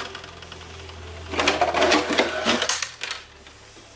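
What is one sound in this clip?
A plastic car body clatters as it is pulled off a chassis.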